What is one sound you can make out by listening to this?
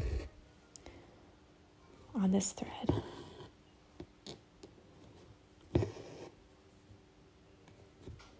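Thread pulls softly through taut fabric.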